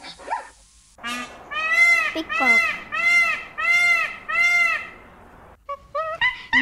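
A peacock calls loudly, over and over.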